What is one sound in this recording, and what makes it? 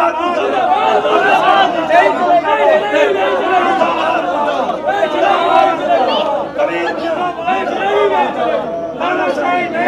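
A crowd of men shout over one another.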